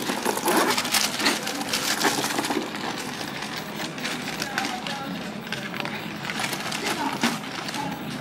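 A plastic bag rustles as it is handled.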